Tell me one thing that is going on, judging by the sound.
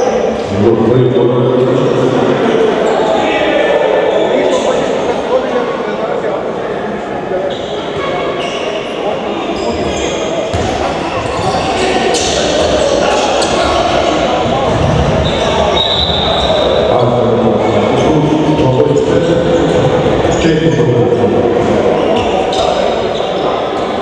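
Sneakers squeak on a hard floor in an echoing sports hall.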